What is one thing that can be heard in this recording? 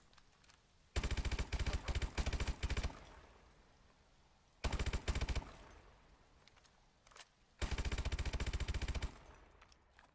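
Rapid bursts of automatic gunfire ring out loudly.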